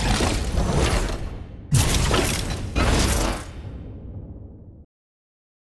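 Loud bursts of electronic game sound effects crash and then fade away.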